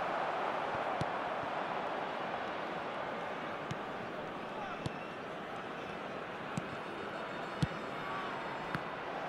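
A football is kicked with sharp thuds now and then.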